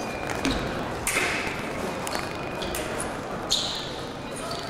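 Fencing blades clash and scrape sharply.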